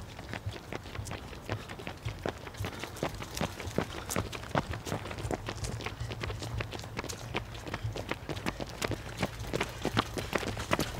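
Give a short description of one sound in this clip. Running footsteps patter quickly on asphalt, close by.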